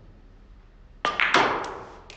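A cue sharply strikes a billiard ball.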